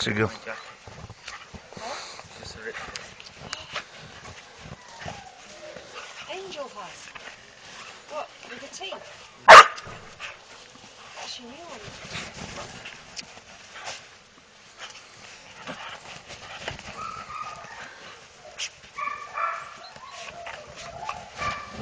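Small dogs run and scuffle through snow.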